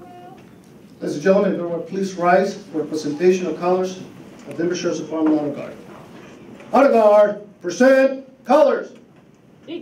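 A man speaks steadily through a microphone over loudspeakers.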